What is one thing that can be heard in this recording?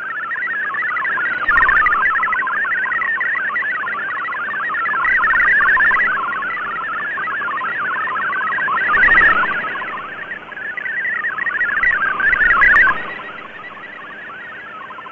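A radio receiver plays a warbling, chirping data signal through hiss.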